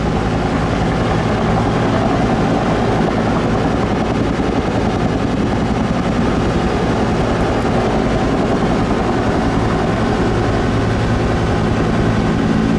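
A helicopter's rotor blades thump loudly and steadily close by.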